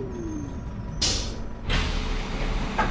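Bus doors hiss and clatter open.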